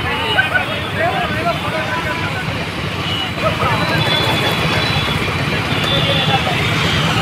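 Motorcycle engines rumble steadily as a group rides past close by.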